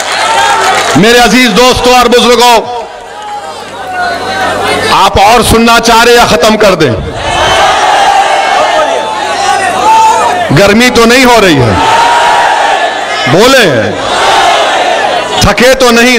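Young men shout chants in bursts close by.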